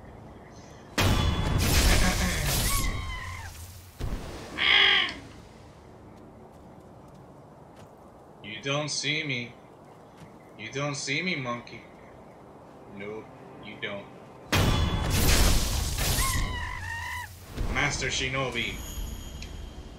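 A sword slashes with a loud impact.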